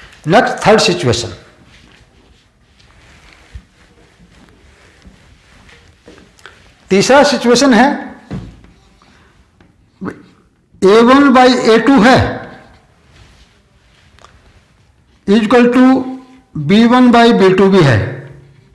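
An older man speaks clearly in short bursts.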